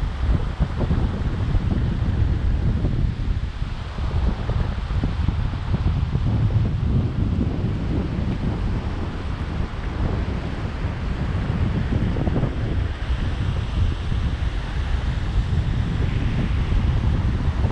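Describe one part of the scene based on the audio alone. Wind buffets a microphone outdoors, rumbling steadily.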